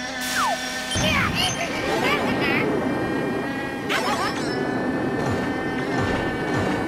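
A kart engine hums steadily.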